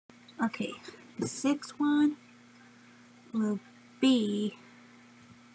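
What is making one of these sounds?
A young woman speaks briefly and casually, close to a microphone.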